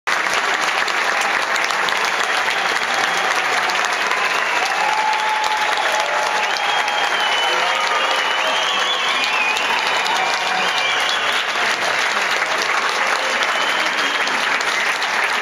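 A crowd claps and cheers loudly in a large hall.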